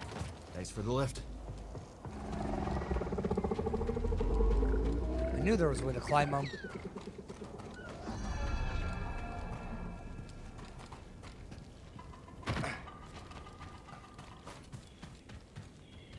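Footsteps run over rough ground.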